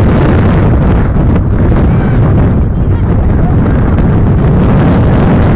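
Wind blusters loudly across an open outdoor field.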